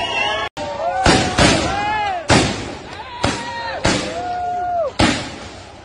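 Tear gas canisters go off with sharp bangs.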